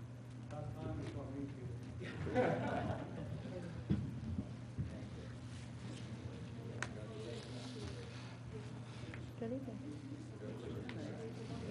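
People shuffle and move about as they stand up.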